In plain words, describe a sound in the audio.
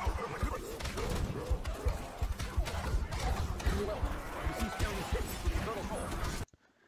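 A gun fires in rapid bursts with heavy booming blasts.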